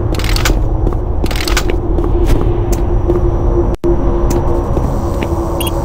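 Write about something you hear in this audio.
Footsteps clank on a metal grating floor.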